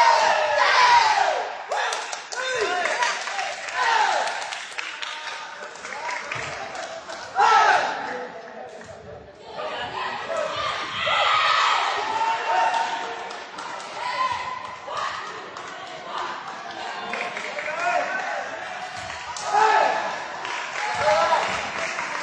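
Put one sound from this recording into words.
Young men shout and cheer in a large echoing hall.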